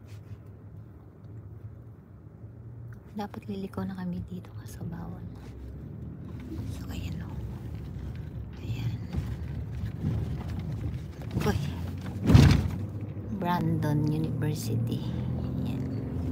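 A car engine hums steadily from inside the car.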